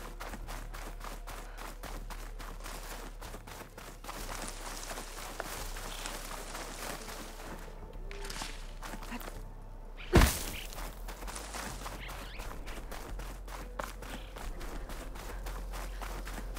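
Wind blows steadily across open land.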